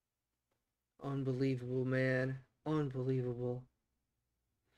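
A man speaks briefly and calmly, close to a microphone.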